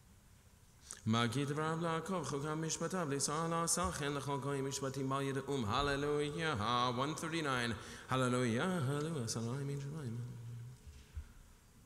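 A man chants in a steady, sung voice through a microphone.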